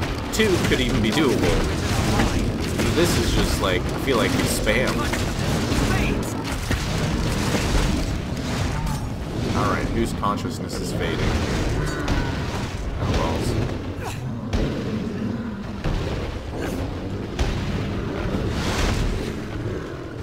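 Swords clash and strike against a huge monster.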